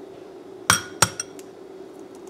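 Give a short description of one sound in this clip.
An egg cracks sharply against the rim of a glass bowl.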